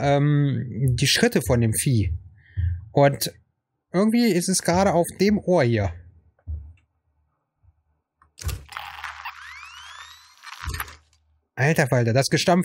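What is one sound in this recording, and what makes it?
A man talks with animation into a headset microphone, close by.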